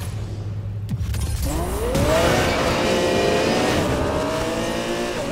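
A car engine revs up loudly and roars away.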